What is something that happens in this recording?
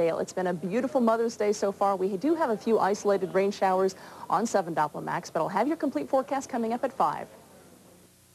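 A woman speaks clearly and steadily through a microphone, as if presenting the news.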